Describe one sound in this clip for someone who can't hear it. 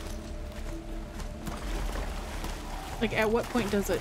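Shallow water splashes under running hooves.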